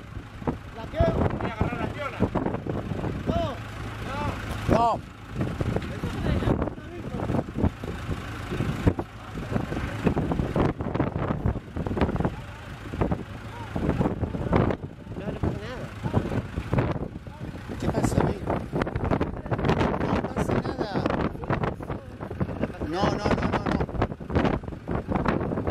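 A diesel farm tractor idles.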